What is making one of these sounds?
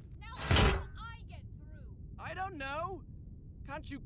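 A young man grunts with effort.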